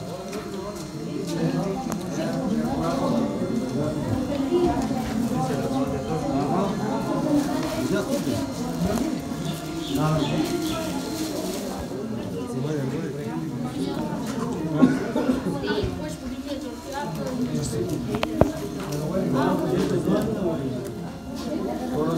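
Boys chatter close by, overlapping one another.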